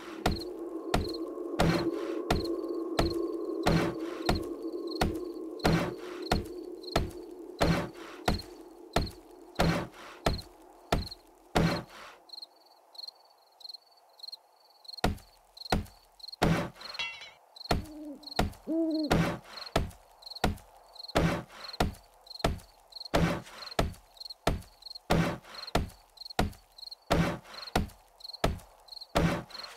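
A stone axe knocks steadily against wooden boards.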